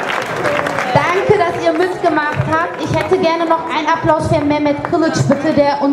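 A woman sings loudly into a microphone, heard through a loudspeaker.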